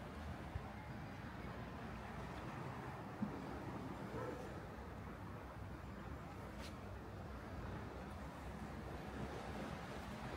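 Small waves wash gently against rocks.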